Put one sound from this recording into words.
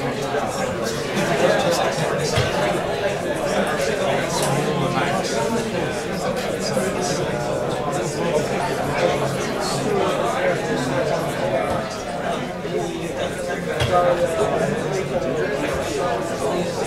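An audience chatters in the background.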